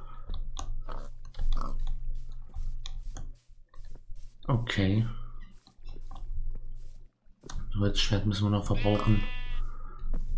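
A pig grunts nearby.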